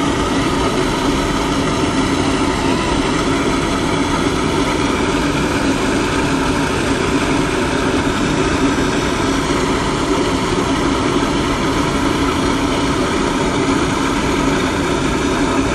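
A steam-powered blowtorch roars, shooting a jet of flame.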